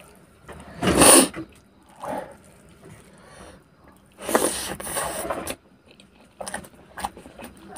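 Fingers squish and mix rice on a metal plate.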